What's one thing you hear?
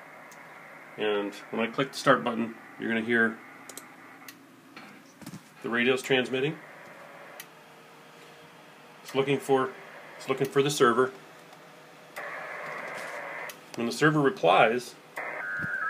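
A man talks in short bursts through a crackly radio loudspeaker.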